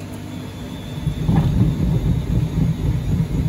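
A washing machine speeds up into a loud, rumbling spin.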